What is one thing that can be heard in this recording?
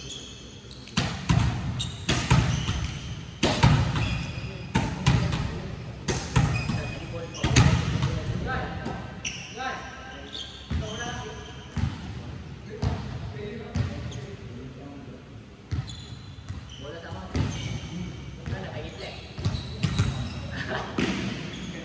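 A volleyball is struck by hands and thuds in a large echoing hall.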